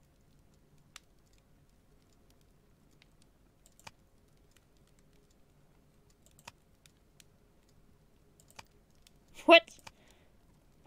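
Soft menu clicks sound now and then as selections change.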